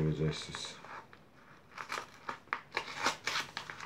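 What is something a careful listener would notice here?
A blade slits through the envelope's seal with short scratching sounds.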